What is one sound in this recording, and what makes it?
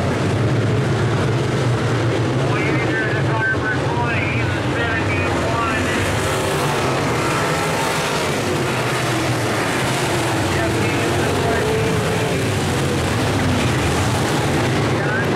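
Several V8 dirt-track modified race cars roar at full throttle around the track.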